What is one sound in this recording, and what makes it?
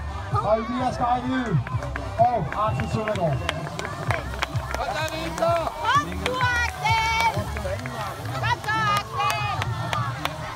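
A crowd of spectators shouts and cheers excitedly.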